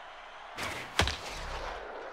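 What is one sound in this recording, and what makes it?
A baseball bat cracks against a ball.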